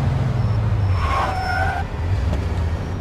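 Car tyres screech in a skid.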